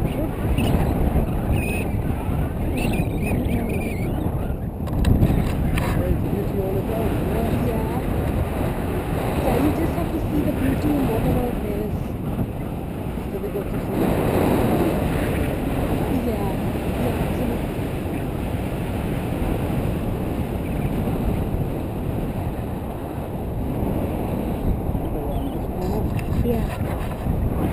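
Strong wind rushes and buffets against a close microphone.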